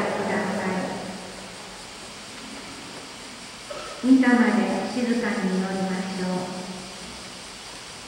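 A man chants through loudspeakers in a large echoing hall.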